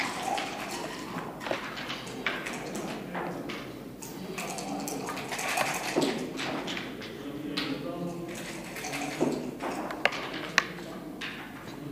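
Wooden checkers click and slide on a wooden board.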